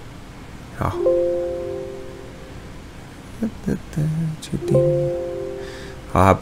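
A computer alert chime sounds twice.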